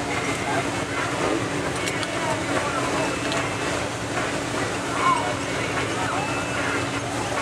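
Race car engines roar and rev on a dirt track.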